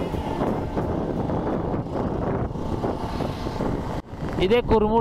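Wind rushes and buffets against the microphone.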